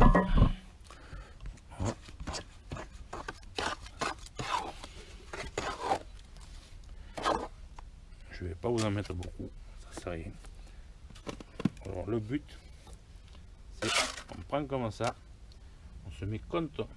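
A trowel scrapes and scoops wet mortar.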